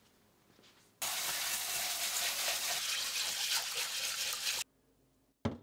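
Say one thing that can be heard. Water runs and splashes as rice is rinsed.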